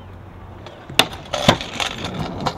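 A scooter clacks sharply as it lands on concrete.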